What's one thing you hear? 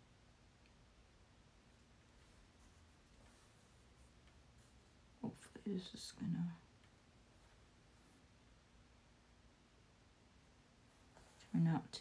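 Paper crinkles softly as fingers fold it.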